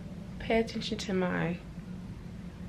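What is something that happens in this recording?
A young woman talks casually, close to a microphone.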